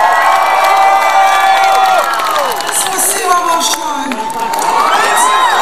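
A rock band plays loudly with electric guitars, keyboards and drums.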